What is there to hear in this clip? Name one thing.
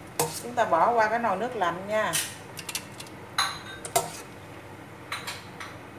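Water splashes in a pot as pieces are scooped out.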